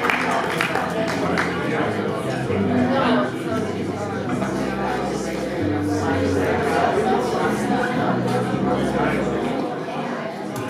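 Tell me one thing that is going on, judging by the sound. A bass guitar plays deep notes.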